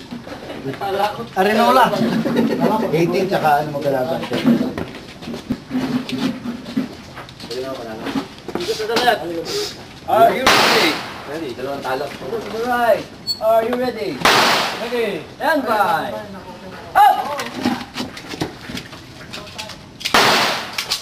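A man talks loudly nearby.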